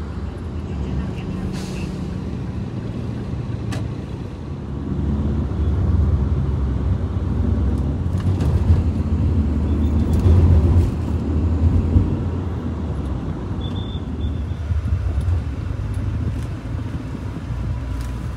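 Traffic rumbles steadily along a busy city street.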